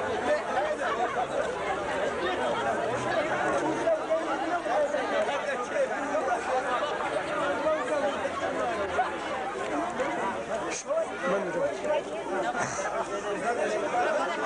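A large crowd of men chatters loudly outdoors.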